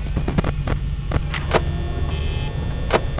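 Static hisses and crackles from a monitor.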